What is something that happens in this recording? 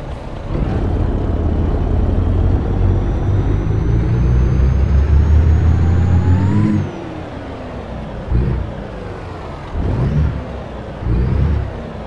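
A heavy truck engine rumbles and slowly revs higher, then eases off.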